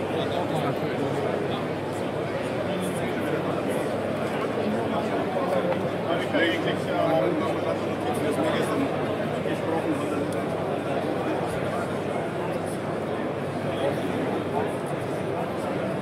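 A crowd of people chatters all around in a busy indoor hall.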